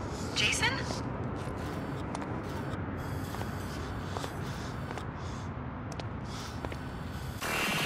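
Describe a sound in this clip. Footsteps tread on a hard rooftop.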